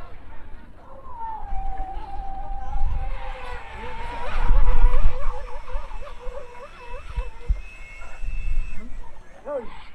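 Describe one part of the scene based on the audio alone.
A model boat's motor whines across the water, rising and falling in pitch.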